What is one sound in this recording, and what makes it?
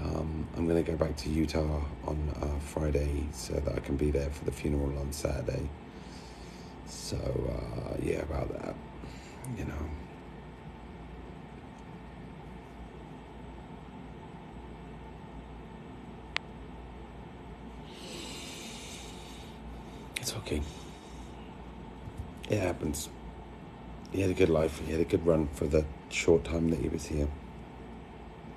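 A middle-aged man talks close to the microphone.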